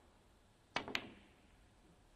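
A snooker cue ball clicks against a red ball.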